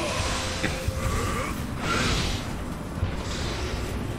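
A crackling electric blast strikes the ground with a loud crash.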